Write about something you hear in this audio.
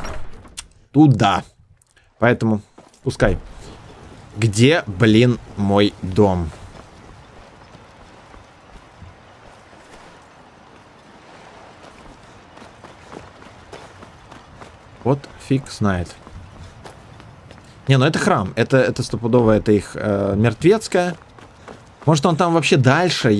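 A young man talks casually into a close microphone, with pauses.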